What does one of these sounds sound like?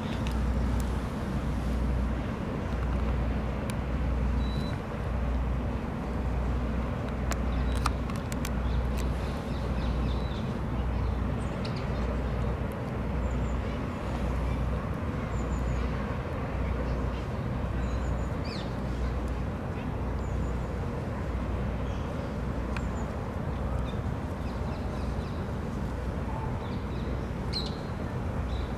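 Water ripples and laps gently.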